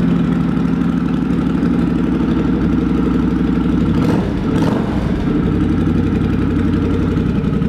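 A motorcycle engine idles nearby with a steady low rumble.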